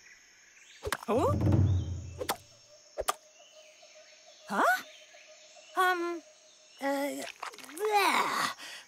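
A cartoon elephant speaks in a deep, playful voice.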